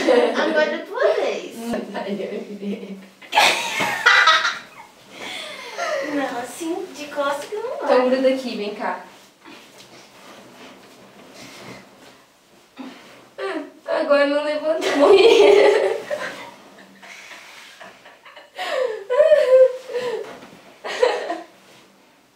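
Young women laugh and shriek up close.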